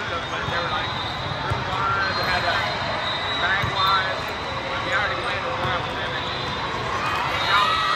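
A volleyball is struck with sharp slaps during a rally.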